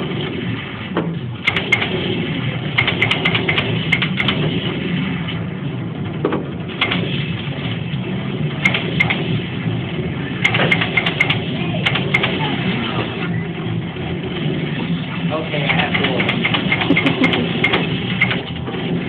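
A noisy arcade hums with overlapping game sounds.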